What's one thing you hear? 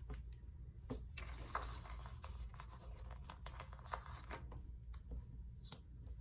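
Paper rustles and crinkles as pages are handled close by.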